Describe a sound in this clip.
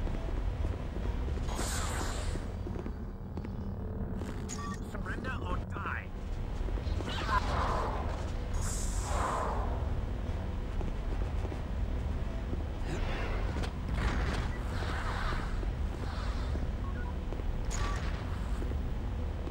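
A lightsaber hums low and steadily.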